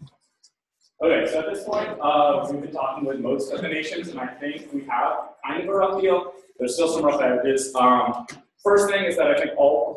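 A man speaks to a room from the front, his voice echoing in a lecture hall.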